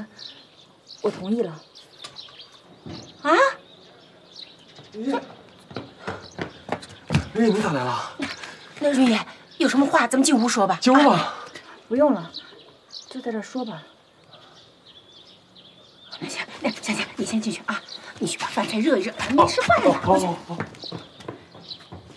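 A middle-aged woman speaks with animated surprise close by.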